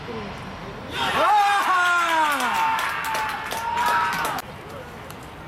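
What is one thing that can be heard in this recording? A small crowd cheers and shouts loudly.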